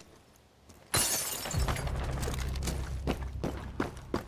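A wooden wall bursts apart with a loud crash and splintering.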